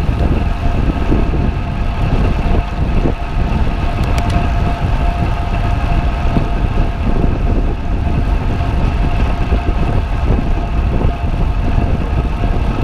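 Bicycle tyres hum steadily on smooth road.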